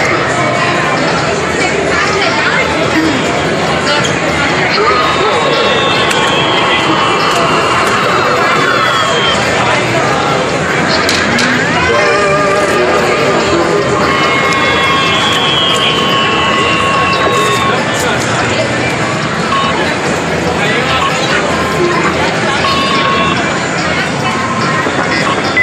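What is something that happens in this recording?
A din of arcade machines fills a noisy, echoing hall.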